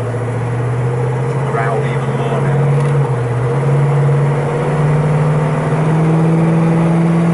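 A car engine hums steadily from inside, slowly rising in pitch as the car speeds up.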